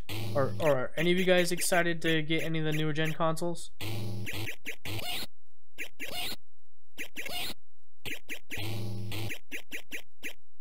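Arcade game bleeps and short jingles play in quick bursts.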